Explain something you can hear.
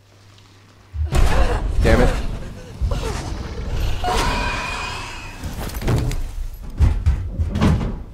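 A creature hisses and shrieks loudly, close by.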